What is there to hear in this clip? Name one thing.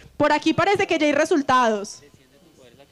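A young woman speaks with feeling into a microphone, close by.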